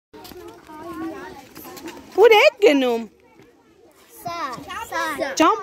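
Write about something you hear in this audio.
Young children talk and call out excitedly close by.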